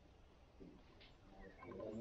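A banana peel tears softly.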